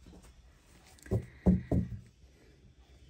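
Playing cards riffle and tap together as they are shuffled close by.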